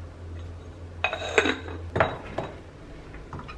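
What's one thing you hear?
An egg cracks against a glass bowl.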